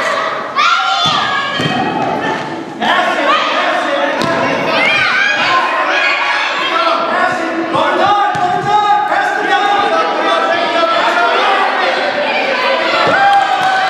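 Children shout and call out loudly in a large echoing hall.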